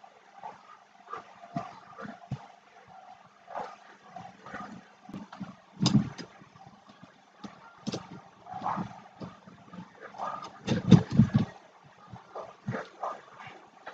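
A metal plate clicks and clanks as it is handled.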